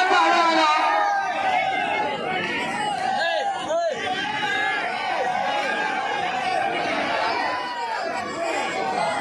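A man commentates excitedly through a loudspeaker.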